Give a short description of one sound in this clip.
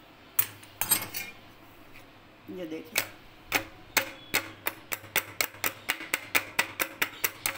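A metal strainer clinks repeatedly against the rim of a metal tin, faster and faster.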